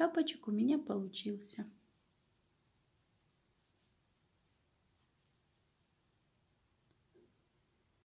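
Soft knitted wool rustles faintly as hands turn it over.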